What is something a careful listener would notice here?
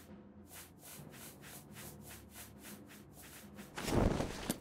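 A game menu ticks rapidly as a list scrolls.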